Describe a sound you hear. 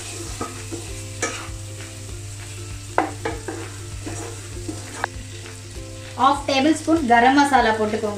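Meat sizzles in a frying pan.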